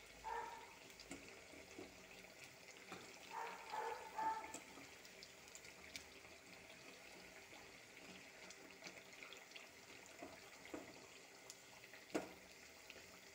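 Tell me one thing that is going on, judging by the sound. A spatula scrapes and clinks against a metal pan.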